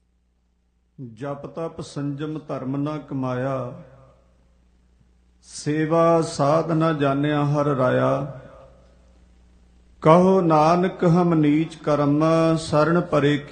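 A man sings loudly through a microphone in bursts of long phrases.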